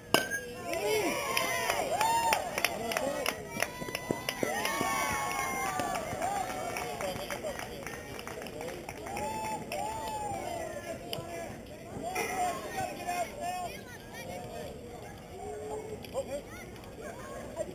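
A crowd of people cheers and shouts outdoors.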